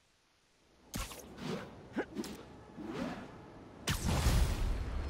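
Sharp whooshing snaps of web lines shooting out.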